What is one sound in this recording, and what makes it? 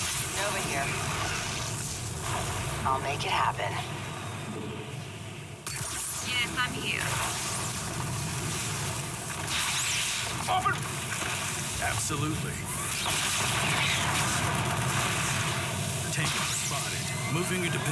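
Sci-fi energy weapons fire in bursts.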